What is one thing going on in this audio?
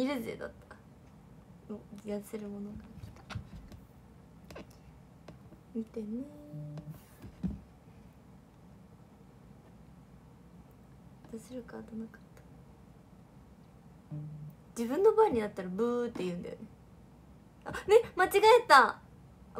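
A young woman talks casually, close to a microphone, with pauses.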